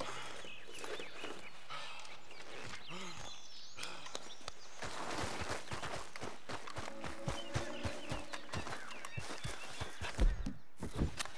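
Footsteps crunch through grass and dry brush.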